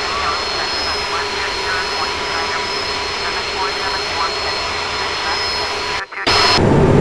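Jet engines hum steadily from outside an airliner.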